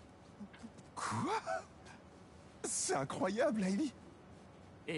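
A young man speaks cheerfully.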